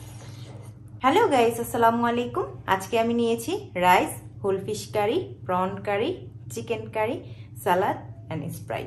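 A young woman talks warmly and with animation, close to a microphone.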